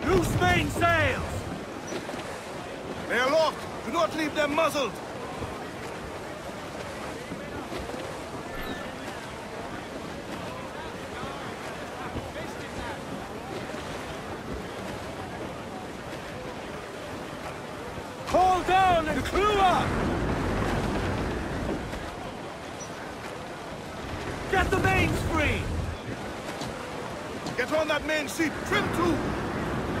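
Wind blows through a ship's sails and rigging.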